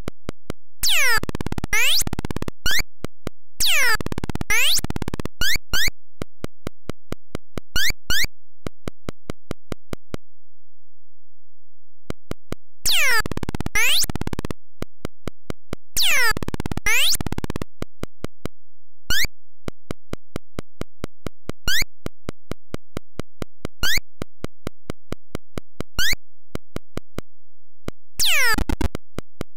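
Electronic beeps sweep down in pitch in short bursts.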